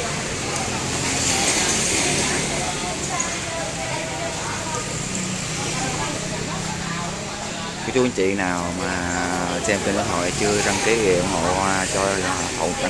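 Many people chatter and talk over each other nearby.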